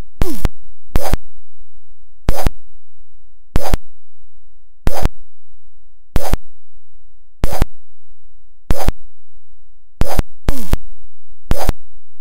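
A harsh burst of a game's sound effect crashes again and again at a steady pace.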